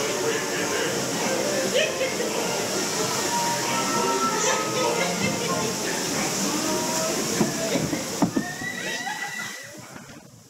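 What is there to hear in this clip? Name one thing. Men and women talk and chatter close by.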